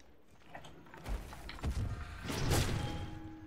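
A heavy magical blast booms.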